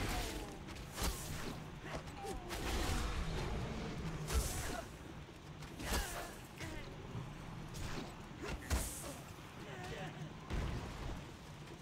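Magic blasts burst and crackle in short, sharp hits.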